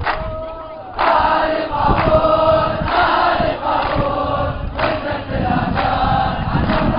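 A large crowd outdoors chants loudly in unison.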